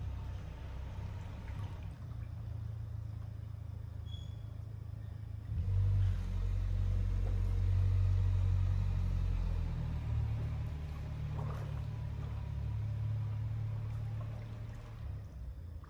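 Water laps gently in a pool.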